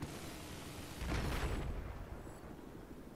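A vehicle explodes with a loud, deep boom.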